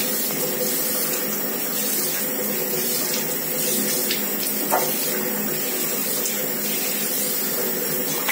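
Water pours and splashes steadily close by.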